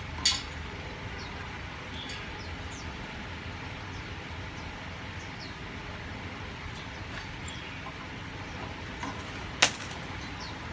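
Small metal tools click and scrape.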